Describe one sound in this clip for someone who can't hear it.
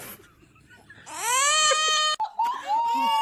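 A toddler cries loudly.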